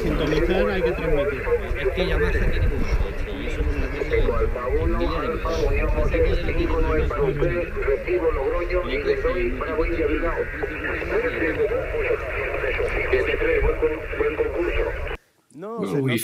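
A man talks over a two-way radio with a thin, muffled sound.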